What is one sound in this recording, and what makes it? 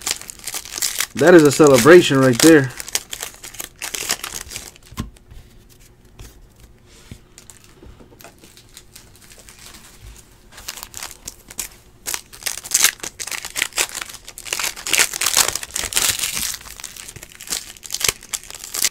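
Hands crinkle and tear open foil card packs.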